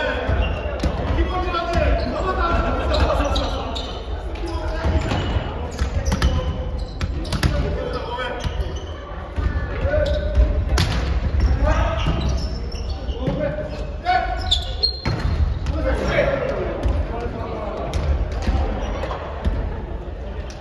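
Young men and women call out and shout across a large echoing hall.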